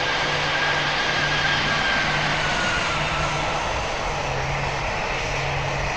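The engines of a jet airliner roar in flight.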